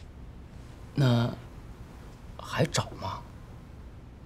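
A man asks a question in a calm voice.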